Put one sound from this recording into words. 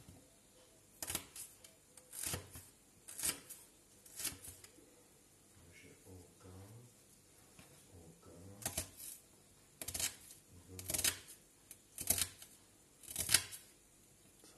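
A knife chops through an onion and taps on a wooden board.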